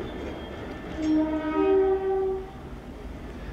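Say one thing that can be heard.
A train horn sounds two short notes in the distance.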